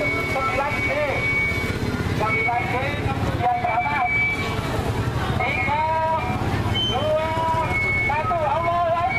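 A crowd of women, men and children chatter outdoors all around.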